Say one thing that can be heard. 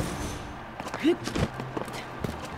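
A heavy object thuds down onto a stone floor.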